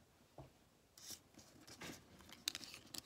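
A hand slides and sets card pieces on a wooden table.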